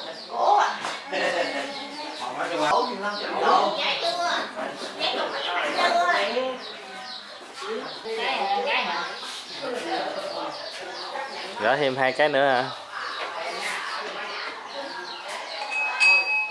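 Elderly women talk and murmur nearby.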